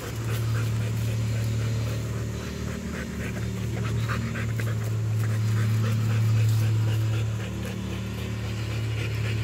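Dry leaves crunch under a dog's paws.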